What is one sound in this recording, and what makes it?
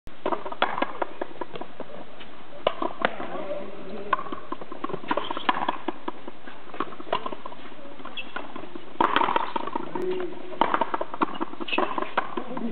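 Sneakers squeak and patter on a hard court.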